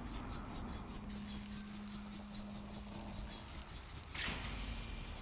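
Electricity crackles and buzzes.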